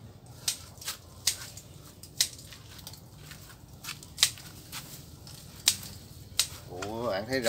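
Pruning shears snip through hanging roots.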